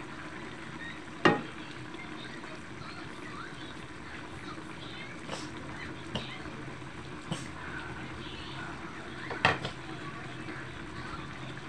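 A thick sauce bubbles and simmers in a wok.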